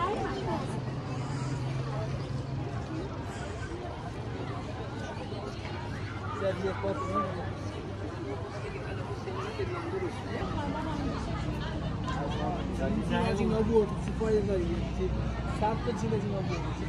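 Voices chatter nearby in a busy outdoor walkway.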